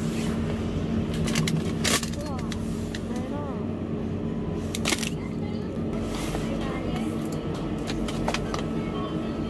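Plastic ice cream wrappers crinkle and rustle as they are handled.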